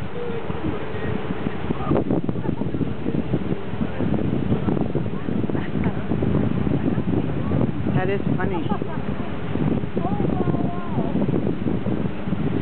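A large flock of water birds calls and chatters on the water.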